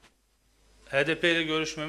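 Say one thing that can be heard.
A man speaks calmly into a microphone at close range.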